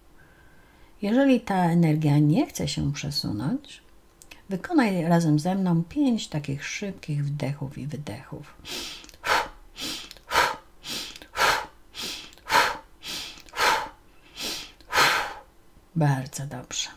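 A middle-aged woman speaks calmly and softly close to a microphone.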